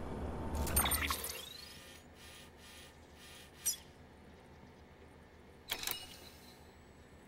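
Soft electronic menu blips and whooshes sound now and then.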